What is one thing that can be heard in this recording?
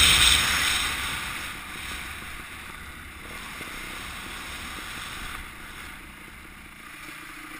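Wind rushes loudly past a moving rider, then eases off.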